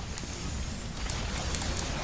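Chained blades whoosh through the air.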